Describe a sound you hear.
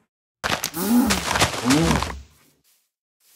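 A fire roars and crackles.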